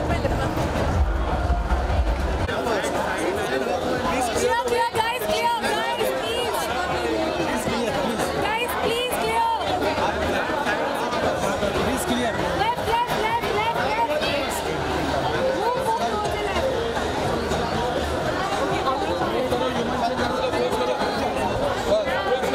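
People in a crowd scream and cheer excitedly.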